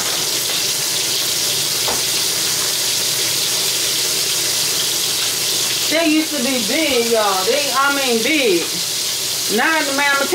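Meat sizzles steadily in a hot pot.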